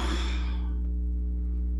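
A man sniffs deeply close by.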